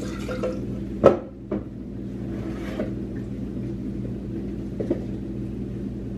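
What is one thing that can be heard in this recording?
A plastic bottle crinkles as it is handled.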